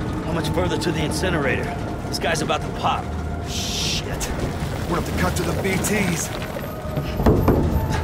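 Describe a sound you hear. A second man shouts back with alarm.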